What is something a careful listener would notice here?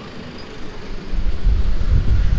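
A van drives past close by.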